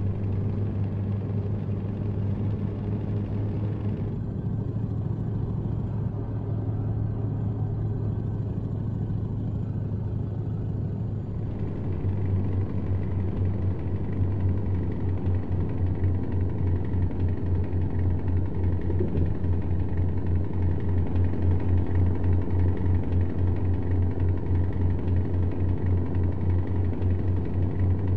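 A truck engine hums low and steady as it drives along.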